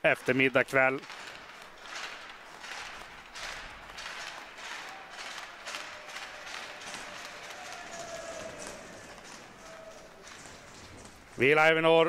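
Hockey sticks tap against the ice.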